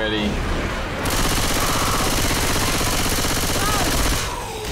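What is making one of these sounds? A gun fires in a rapid, steady stream of shots.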